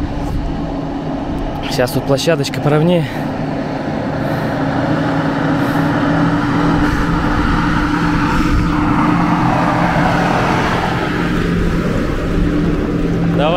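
Car engines hum as vehicles approach slowly.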